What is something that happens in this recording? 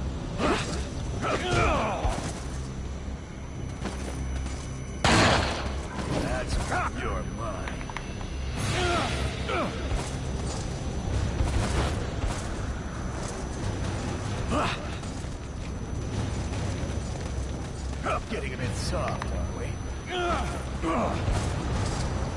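A man grunts and shouts while struggling.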